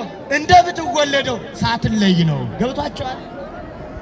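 A man sings loudly and close by.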